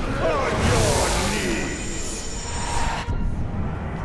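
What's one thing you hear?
A creature roars and snarls.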